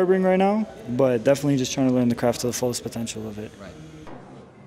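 A young man speaks casually nearby.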